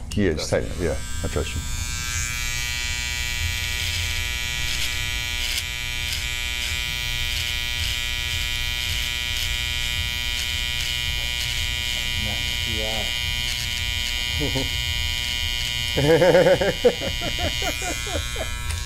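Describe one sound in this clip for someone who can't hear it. An electric trimmer buzzes steadily close by.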